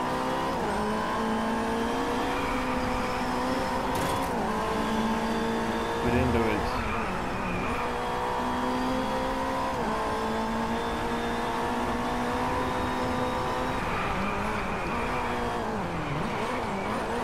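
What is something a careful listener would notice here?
A single-seater race car engine revs at full throttle, shifting up through the gears.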